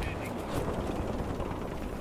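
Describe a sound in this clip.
A loud explosion booms in the distance.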